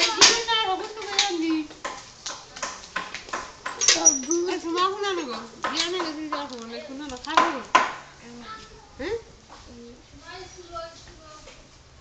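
A young child chatters nearby.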